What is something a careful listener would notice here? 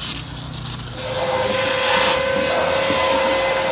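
A vacuum cleaner hums and sucks steadily.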